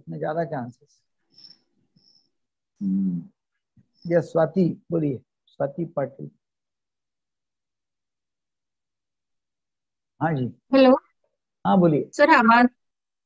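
An elderly man speaks calmly over an online call, in short bursts with pauses.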